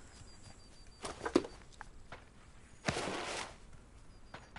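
A crate lid clicks and clatters open.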